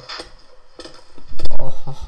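Blocks break with short crunching knocks.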